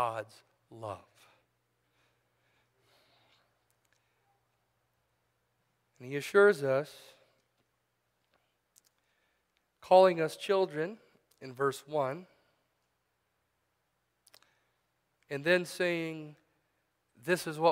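A middle-aged man speaks slowly and calmly through a microphone, with long pauses.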